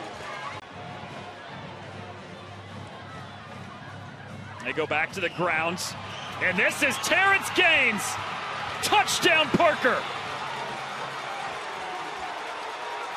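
A crowd cheers loudly in a large outdoor stadium.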